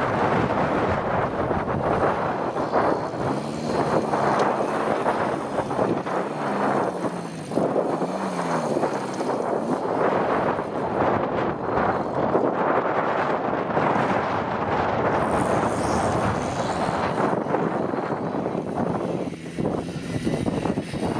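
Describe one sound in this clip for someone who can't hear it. A small car engine revs hard and whines, rising and falling.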